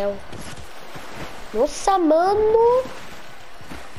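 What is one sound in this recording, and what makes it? Water splashes as a character swims.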